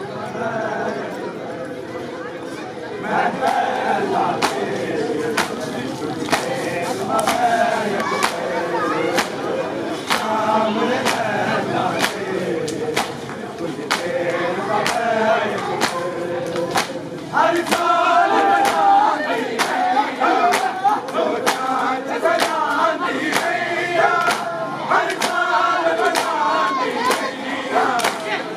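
A large crowd of men chants loudly together outdoors.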